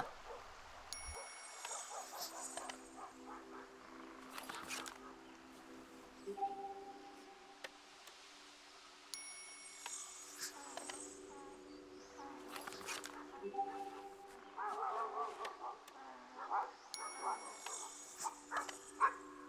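A short electronic chime sounds several times.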